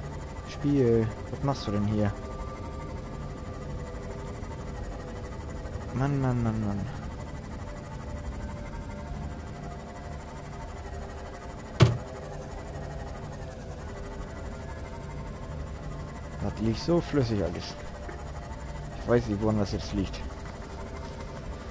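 A submarine engine hums low and steadily underwater.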